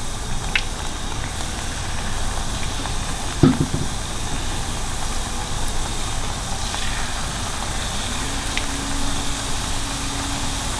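Batter sizzles and crackles in hot oil.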